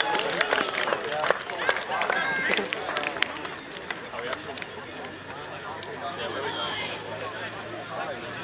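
Young men shout and cheer close by, outdoors.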